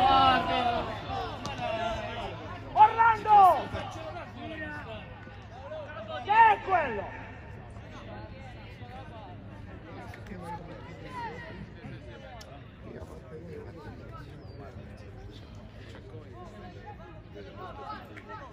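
Young players shout to each other outdoors on an open pitch.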